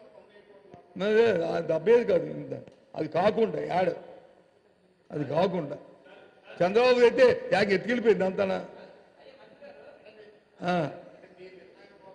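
A middle-aged man speaks forcefully into a microphone in bursts, with pauses between them.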